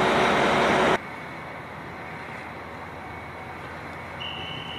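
A train engine hums steadily as a train slowly pulls in.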